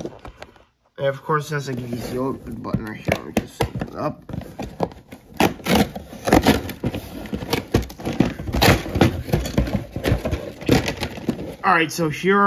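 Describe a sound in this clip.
A cardboard box is handled and opened with scraping and rustling.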